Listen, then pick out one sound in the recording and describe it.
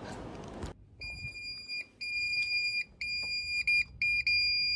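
An alarm keypad beeps with steady, high, repeated tones.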